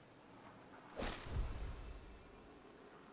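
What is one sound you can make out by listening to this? A sharp swoosh and deep thud sound as armour snaps into place.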